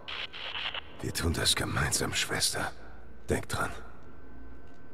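A man answers in a low, calm voice.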